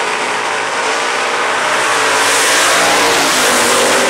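Race car engines roar loudly as cars launch and speed away.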